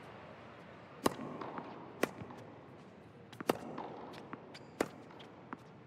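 A tennis ball is struck sharply by a racket, back and forth.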